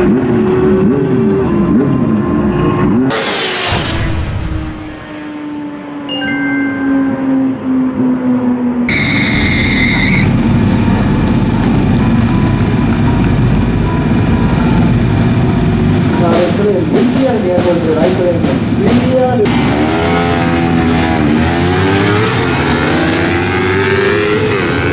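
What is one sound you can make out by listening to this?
Motorcycle engines roar and rev loudly, rising and falling in pitch.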